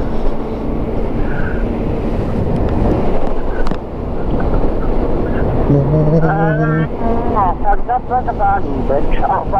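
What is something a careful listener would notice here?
Wind roars and buffets loudly against the rider.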